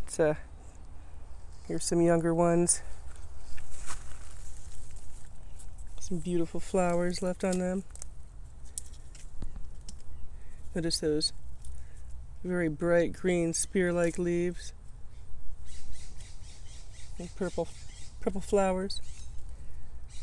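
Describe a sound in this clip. Footsteps rustle through dry leaves and undergrowth.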